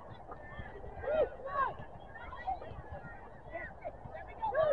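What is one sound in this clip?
Adults in a nearby crowd shout and cheer excitedly outdoors.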